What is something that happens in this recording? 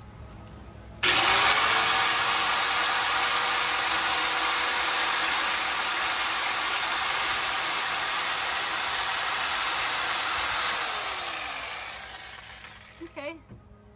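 A power saw whines loudly as it cuts through wood.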